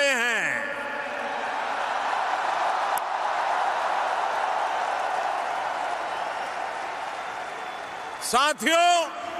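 A large crowd cheers and applauds.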